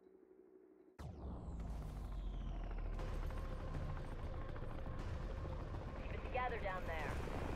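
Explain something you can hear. A helicopter engine drones with a deep, steady rumble.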